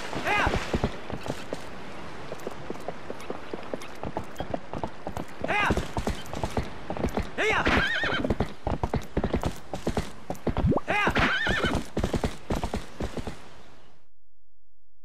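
A horse's hooves pound rapidly on a dirt path.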